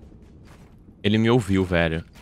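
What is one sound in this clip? A young man speaks loudly into a microphone.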